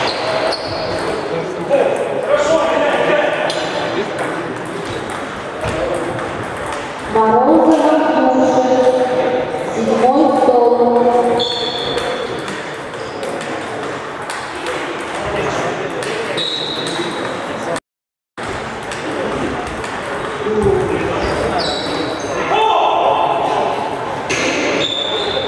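Table tennis balls click against paddles and tables in an echoing hall.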